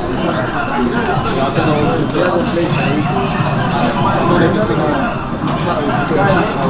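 Punches and kicks from a video game thud through a loudspeaker.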